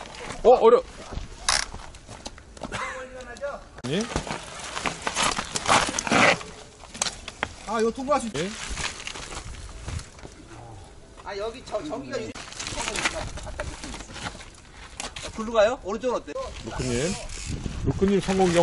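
Mountain bike tyres crunch and rattle over a rocky dirt trail.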